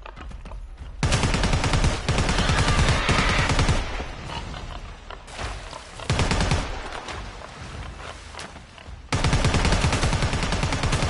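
An automatic rifle fires rapid, loud bursts up close.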